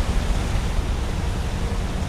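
Water rushes and roars nearby.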